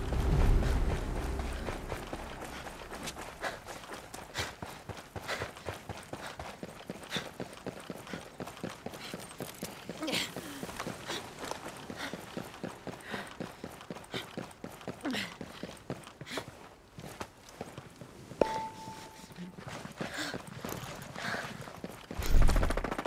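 Boots thud quickly on dirt and concrete.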